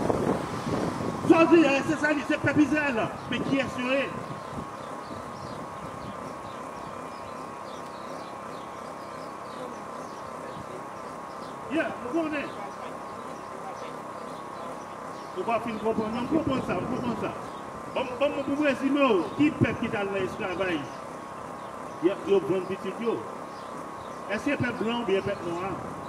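A man speaks loudly and with animation into a microphone, heard through a loudspeaker outdoors.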